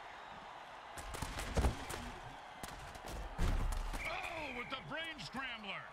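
Armoured players crash together in a tackle with heavy thuds.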